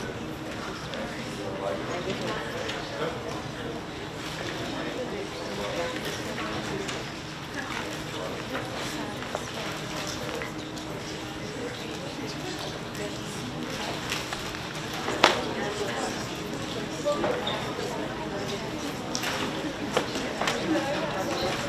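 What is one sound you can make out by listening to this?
A crowd murmurs and chatters in a large room.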